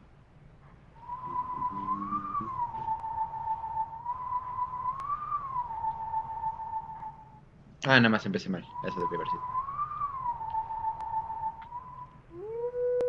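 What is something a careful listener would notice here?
A high, whistling wind instrument plays a slow, wavering melody.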